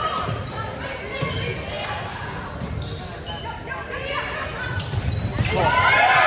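Players and spectators call out and chatter, echoing in a large gym.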